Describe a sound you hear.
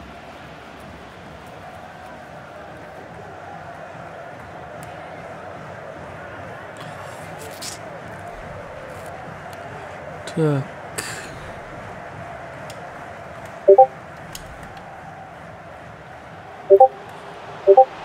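A stadium crowd murmurs and roars steadily in the distance.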